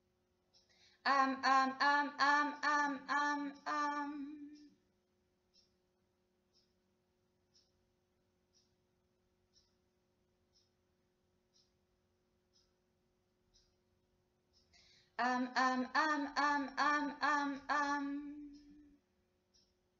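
A young woman sings long, wavering notes close by, in two short phrases.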